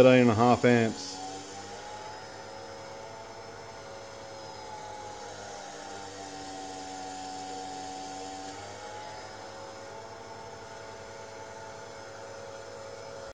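An electric pump hums steadily, its pitch wavering slightly.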